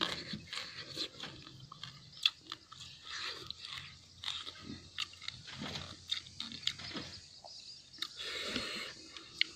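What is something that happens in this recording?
Fingers squish and mix rice on a plate.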